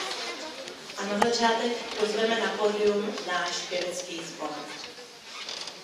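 A woman speaks into a microphone, heard over loudspeakers.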